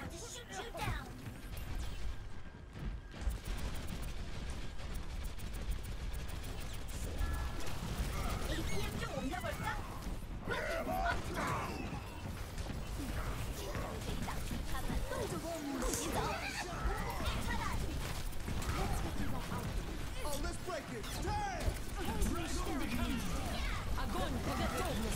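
Twin rapid-fire blasters shoot in bursts.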